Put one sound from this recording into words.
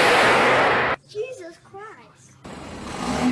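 A young boy talks excitedly.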